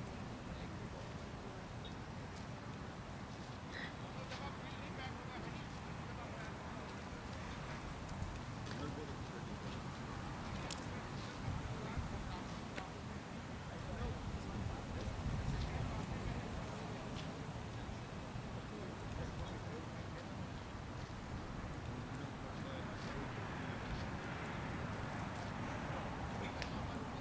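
Wind blows and rumbles outdoors.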